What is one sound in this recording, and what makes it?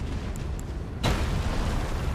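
A heavy impact booms and crashes.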